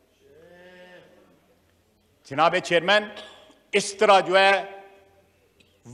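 An older man speaks forcefully into a microphone.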